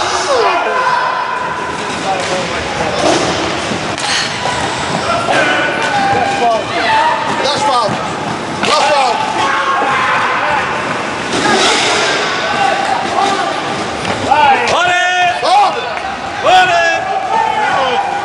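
Roller skates rumble across a wooden floor.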